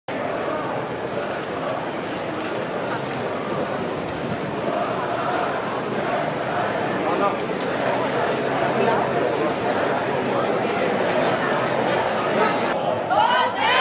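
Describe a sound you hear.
A large crowd murmurs and chants outdoors.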